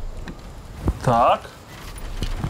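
A man exclaims briefly with a rising and falling voice, close by.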